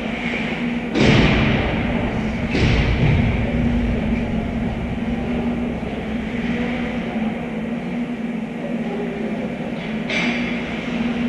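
Hockey sticks knock against a puck with sharp echoing cracks.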